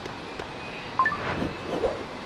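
A short bright chime rings as a pad lights up.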